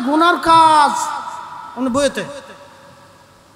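A young man chants in a drawn-out, melodic voice through a loudspeaker microphone.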